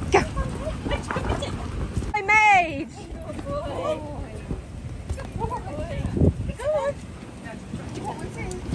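Dogs' paws thump on an inflatable bouncy surface.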